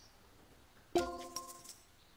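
A golf club taps a ball with a sharp click.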